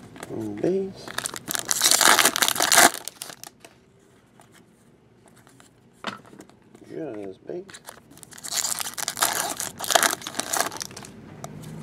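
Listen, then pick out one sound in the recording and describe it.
A foil wrapper crinkles and tears loudly.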